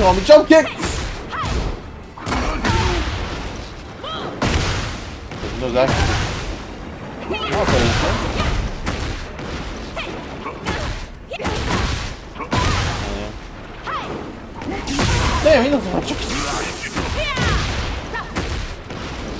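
Punches and kicks land with heavy, sharp impacts again and again.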